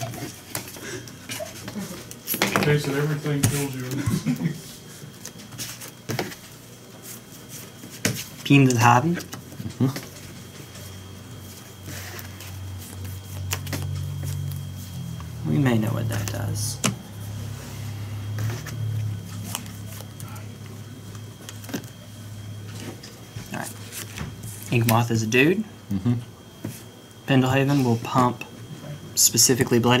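Playing cards tap softly as they are laid down on a table.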